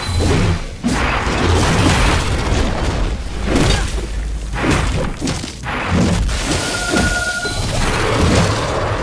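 Heavy blows and fiery blasts crash and roar in a fight.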